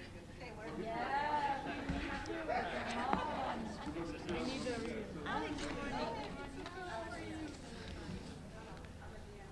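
Several people chat in a room as they gather.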